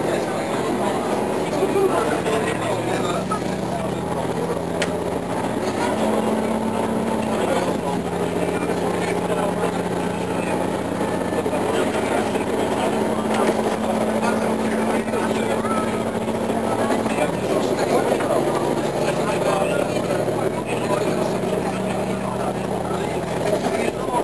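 A train's engine drones with a low hum that shifts in pitch.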